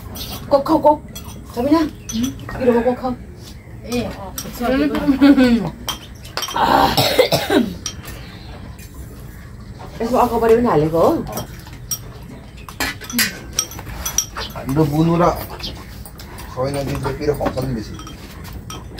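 Young people talk and laugh casually close by.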